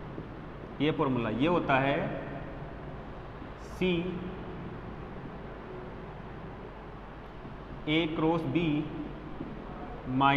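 A young man speaks calmly, lecturing.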